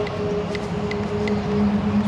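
A man's footsteps crunch on dry leaves and twigs.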